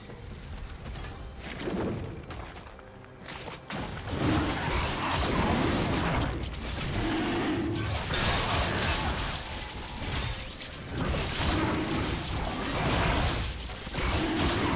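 Magic blasts and sword strikes crackle and thud in a fantasy battle.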